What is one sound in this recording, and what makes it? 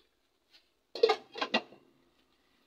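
A glass lid clatters onto a metal pot.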